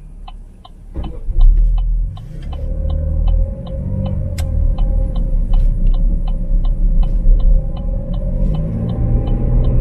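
A car engine rumbles and picks up as the car pulls away.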